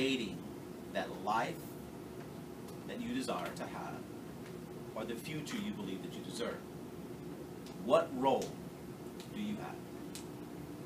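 A young man speaks calmly in a room, in short phrases with pauses.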